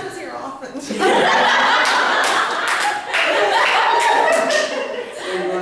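A group of young people laugh.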